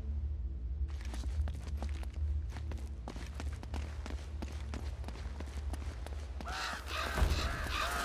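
Footsteps run on stone paving.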